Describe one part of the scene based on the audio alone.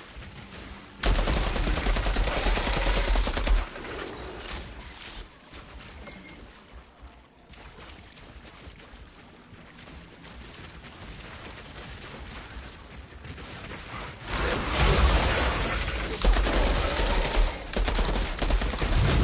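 A rifle fires rapid bursts of shots at close range.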